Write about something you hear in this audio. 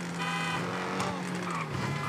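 A sports car exhaust pops and crackles.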